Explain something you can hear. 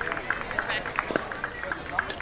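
A metal bat strikes a baseball with a sharp ping.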